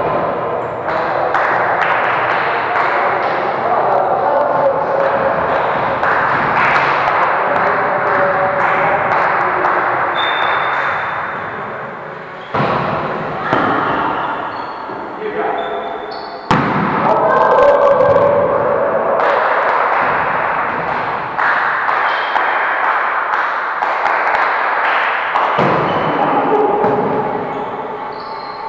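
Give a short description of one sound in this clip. Several men and women call out to each other in a large echoing hall.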